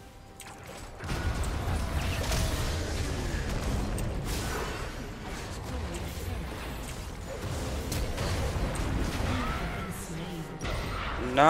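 Magic blasts and battle effects crackle and boom over a low rumble.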